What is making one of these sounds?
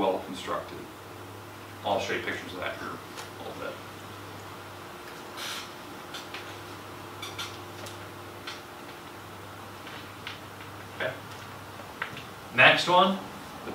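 A man talks calmly at a short distance.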